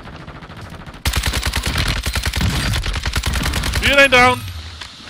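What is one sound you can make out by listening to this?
A rifle fires in rapid, steady bursts.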